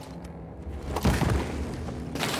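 A body lands with a heavy thump.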